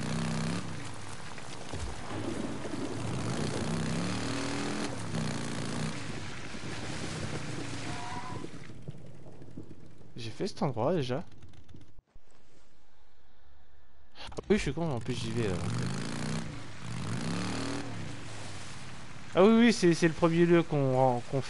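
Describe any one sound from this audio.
A motorcycle engine rumbles and revs.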